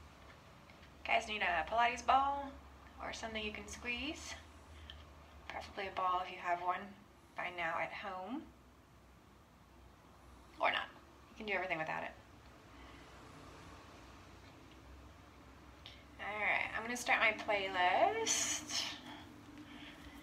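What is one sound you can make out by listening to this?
A young woman talks calmly and closely into a headset microphone, in short bursts.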